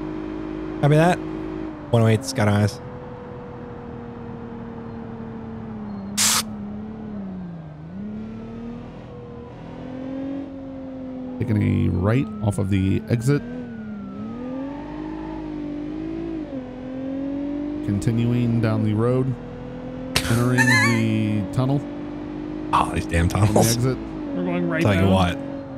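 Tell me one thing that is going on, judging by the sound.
A car engine hums and its pitch rises and falls as the car speeds up and slows down.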